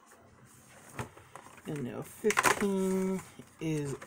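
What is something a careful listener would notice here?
Cardboard rustles as a box is handled.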